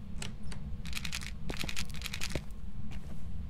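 Salt is shaken out of a container onto a tiled floor.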